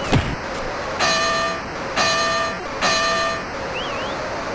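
A boxing bell rings three times.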